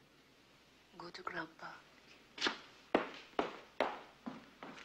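A young woman speaks softly and quietly up close.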